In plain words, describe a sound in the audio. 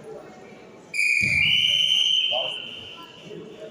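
A referee blows a sharp, long whistle.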